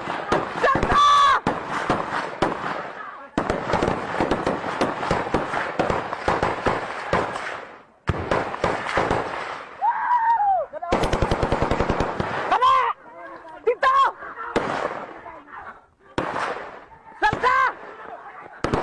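Men shout loudly outdoors.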